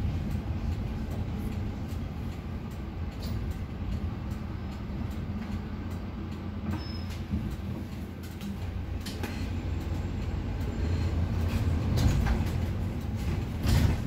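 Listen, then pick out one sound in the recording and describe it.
The bus interior rattles and clicks over bumps in the road.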